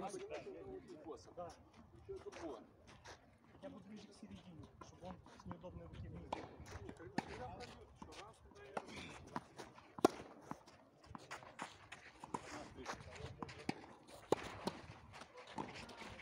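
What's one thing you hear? Tennis players' shoes scuff and slide on a clay court.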